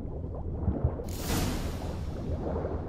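A body plunges into water with a splash.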